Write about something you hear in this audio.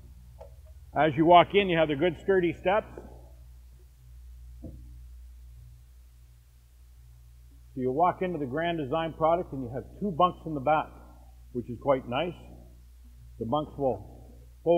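A middle-aged man talks calmly into a close microphone.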